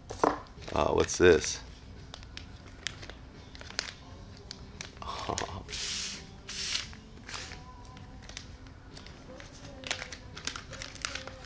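Small plastic bags crinkle as hands open and handle them.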